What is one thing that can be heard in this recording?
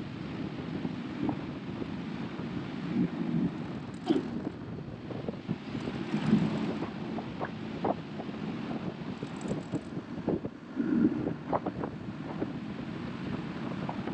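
Wind blows past outdoors.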